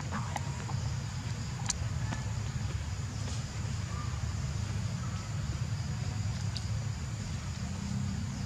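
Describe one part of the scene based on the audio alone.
Dry leaves rustle softly under a small monkey's feet.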